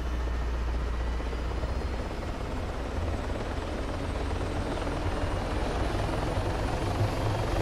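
A car engine hums steadily at a low pitch.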